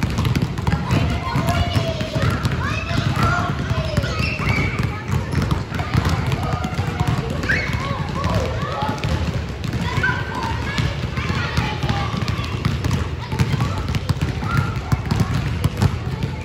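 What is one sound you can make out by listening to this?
Children shout and call out in high voices.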